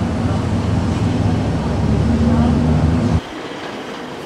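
A car engine idles with a deep rumble.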